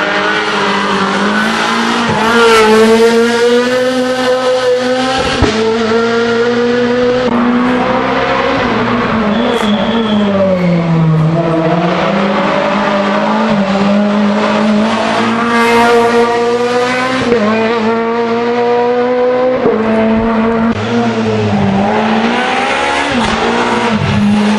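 A rally car engine roars loudly at high revs, rising and falling as the gears change.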